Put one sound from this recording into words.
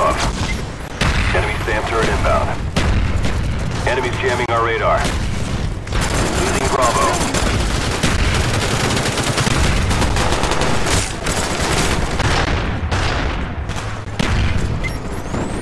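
Gunshots fire in rapid bursts close by.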